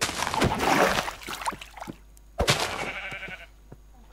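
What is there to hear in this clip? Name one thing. Water splashes as something swims through it.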